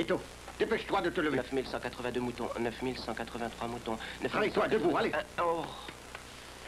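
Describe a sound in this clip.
A second man answers groggily, close by.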